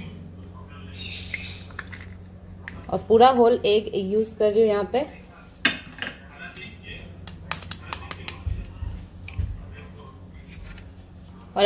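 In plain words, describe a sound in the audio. An egg cracks sharply against the rim of a bowl.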